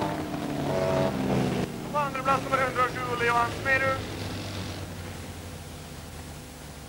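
A race car engine roars as the car speeds along a track outdoors.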